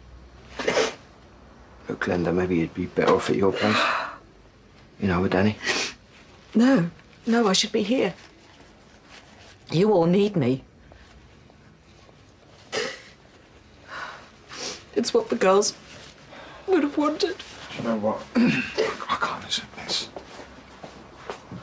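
A woman sniffles and sobs quietly.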